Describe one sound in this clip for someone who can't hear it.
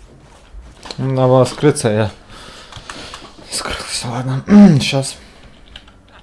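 A young man talks loudly and with animation into a microphone.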